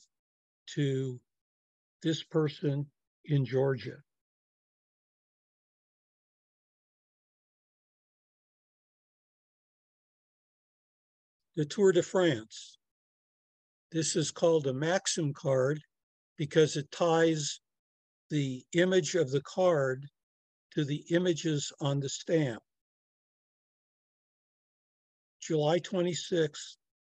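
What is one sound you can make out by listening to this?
An elderly man talks calmly over an online call.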